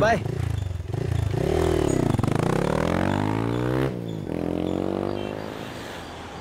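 A motorbike engine revs and pulls away.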